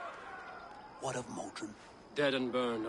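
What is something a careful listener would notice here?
A young man asks a question calmly.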